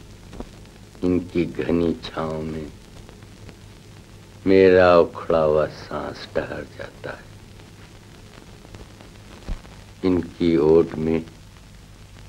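A young woman speaks softly and tenderly, close by.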